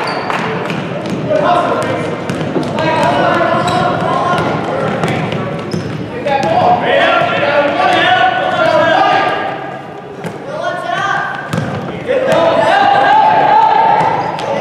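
Sneakers squeak sharply on a wooden floor in a large echoing gym.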